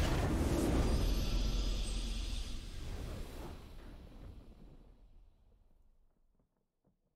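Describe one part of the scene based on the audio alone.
A triumphant fanfare swells and slowly fades away.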